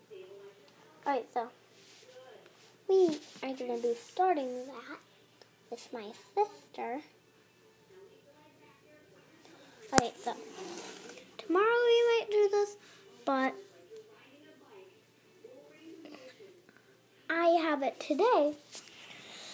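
A young girl sings and talks close to a phone microphone.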